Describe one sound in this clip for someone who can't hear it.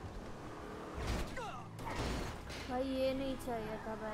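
A car crashes into something with a loud bang.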